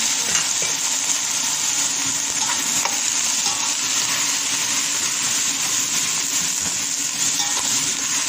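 Dried shrimp rattle and scrape as a spatula stirs them in a metal pan.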